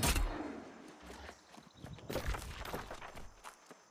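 Footsteps rustle through undergrowth.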